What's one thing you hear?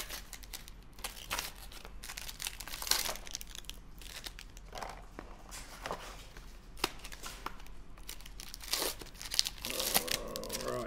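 Plastic card wrappers rustle and crinkle as they are torn open.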